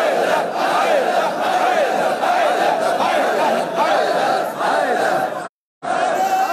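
A crowd of men beats their chests in rhythm.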